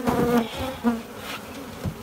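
Bees buzz close by.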